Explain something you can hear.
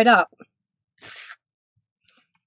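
A silicone mat slides and taps softly on a table.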